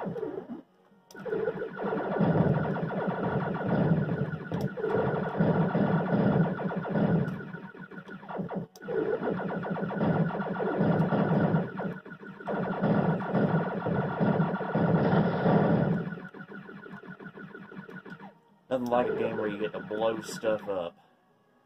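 Video game music and effects play from small speakers.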